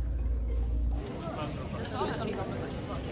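A group of teenage girls cheer and laugh close by.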